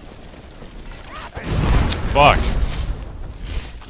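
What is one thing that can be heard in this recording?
A fire spell whooshes and crackles.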